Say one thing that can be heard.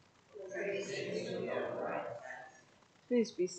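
A congregation speaks a response together in unison.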